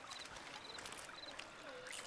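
Water splashes as a hooked fish thrashes at the surface.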